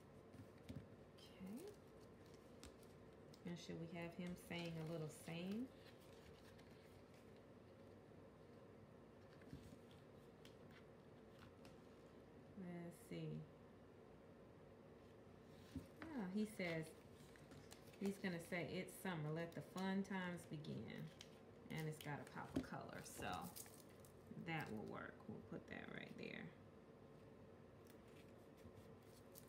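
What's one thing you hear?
Paper stickers rustle softly under fingers.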